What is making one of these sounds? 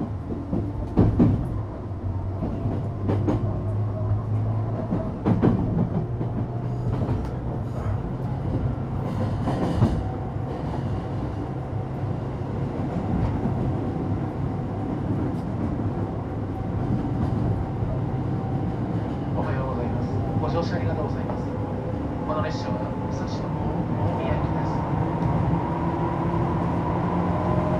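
An electric train hums steadily with a low rumble.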